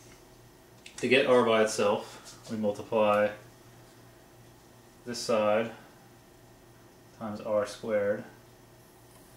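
A man explains calmly in short phrases close by.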